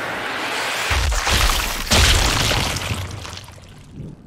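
A bullet smacks into a body with a heavy thud.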